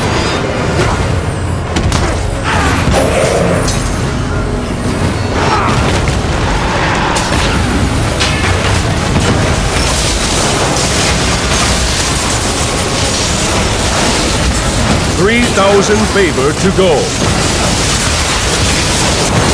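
Game fighters clash with loud thuds and blasts of magic.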